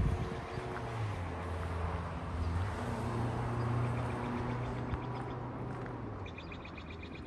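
A car drives past on a road.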